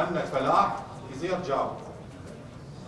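A man speaks into a microphone, reading out in a formal voice.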